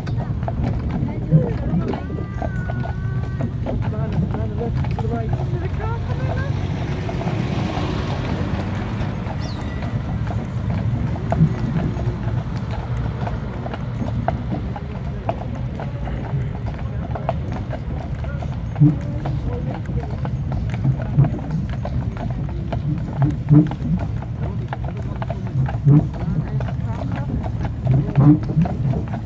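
Carriage wheels rumble along the road.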